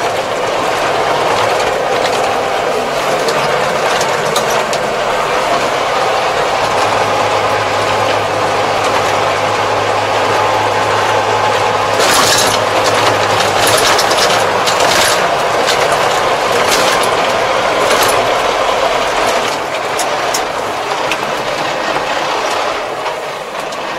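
Tyres crunch and rattle over a rough road.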